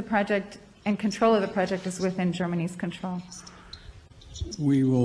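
A woman asks a question through a microphone.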